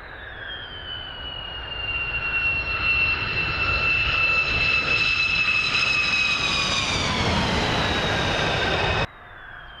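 A jet engine's roar rumbles deeply and grows louder.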